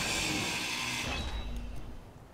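A grinder grinds against metal with a harsh whine.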